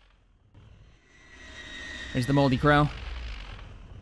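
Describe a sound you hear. A spacecraft engine roars as it flies past.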